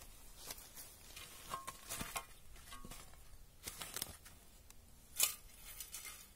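A metal shovel scrapes and knocks against dirt.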